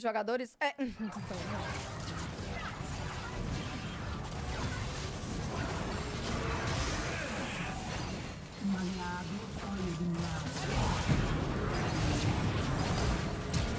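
Game battle effects clash and crackle loudly.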